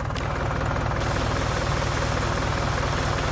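A pressure washer hisses as it sprays water.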